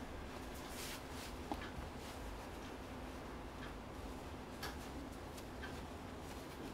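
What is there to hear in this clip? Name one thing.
Fabric rustles softly as a cloth belt is tied.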